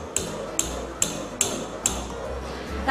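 A glass rod clinks against a glass beaker as a liquid is stirred.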